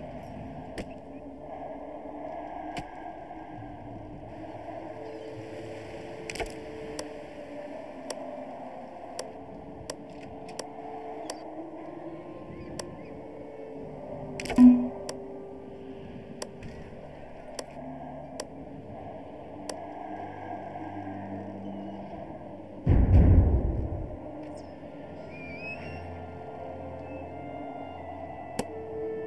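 Wind blows in gusts that swell and fade.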